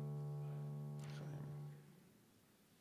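A choir holds a final sung chord and stops.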